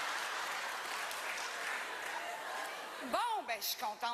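A large audience applauds and cheers in a big hall.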